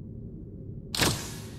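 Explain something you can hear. A hand scanner gives a sharp electronic buzz.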